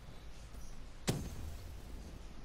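An explosion bursts with a sharp boom.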